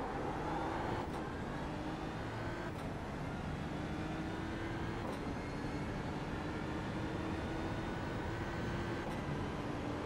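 Gear shifts click sharply as the racing car speeds up.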